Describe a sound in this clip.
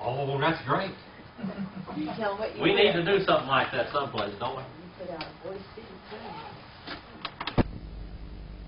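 A middle-aged man speaks nearby through a microphone.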